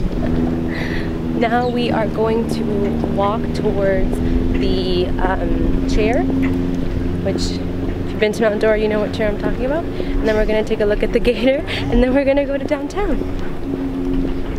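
A young woman talks cheerfully close by.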